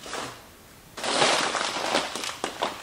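A heavy paper sack scrapes and rustles as it is pulled from a shelf.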